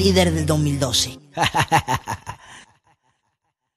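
Loud dance music plays from a DJ's mixer, then cuts off abruptly.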